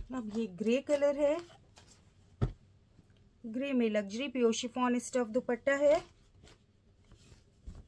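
Cloth rustles and crinkles as it is unfolded.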